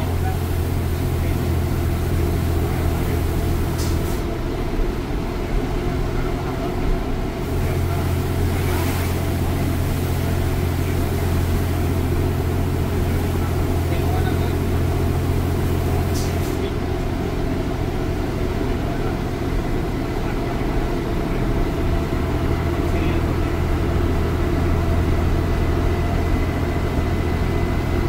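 The bus rattles and shakes over the road.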